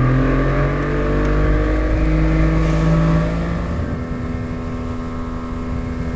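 Water rushes and splashes along a boat's hull.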